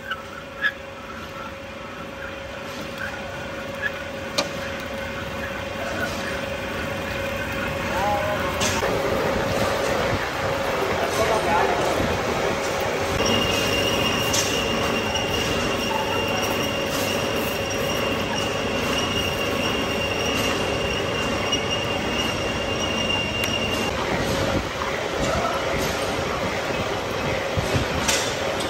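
A large twist drill bores into a steel block, grinding and squealing.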